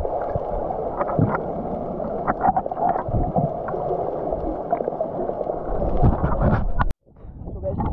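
Water rushes and bubbles in a muffled, underwater hum.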